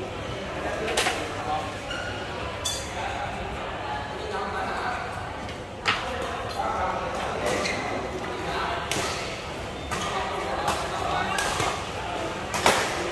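Shuttlecocks are struck with sharp pops of rackets, echoing in a large hall.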